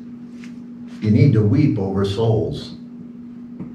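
A middle-aged man speaks calmly and clearly into a microphone nearby.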